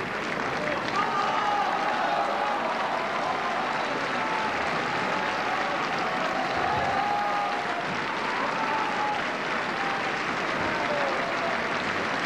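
A male operatic tenor sings in a large hall.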